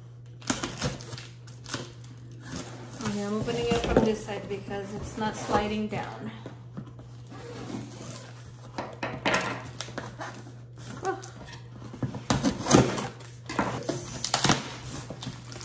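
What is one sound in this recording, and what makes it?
A knife slits packing tape on a cardboard box.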